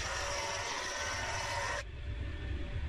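A small electric planer shaves a wooden board with a loud whirring rasp.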